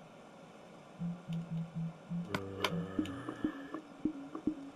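Menu buttons give short soft clicks.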